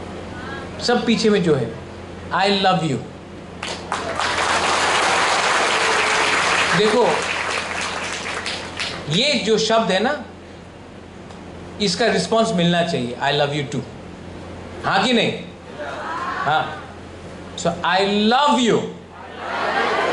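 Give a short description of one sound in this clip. A young man speaks with animation into a microphone over loudspeakers in a large hall.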